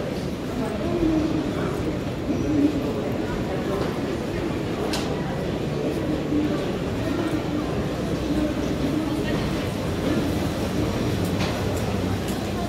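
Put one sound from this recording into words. Footsteps shuffle on a hard floor.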